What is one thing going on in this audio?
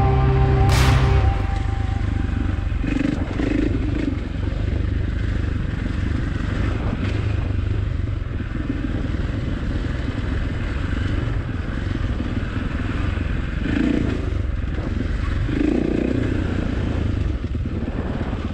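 A dirt bike engine revs and hums steadily up close.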